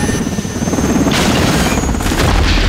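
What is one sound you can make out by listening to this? A heavy crash and explosion rumble as a helicopter hits the ground.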